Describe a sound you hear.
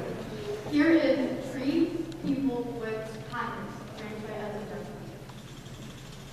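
A large choir of young voices sings in an echoing hall.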